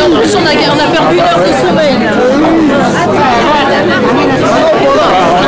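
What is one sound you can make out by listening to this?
A crowd of older men and women chat nearby, their voices overlapping in a busy murmur.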